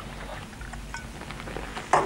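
Liquid pours from a glass bottle into a mug.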